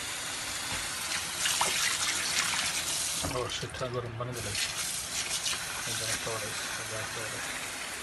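Wet fish slosh and splash as hands stir them in water.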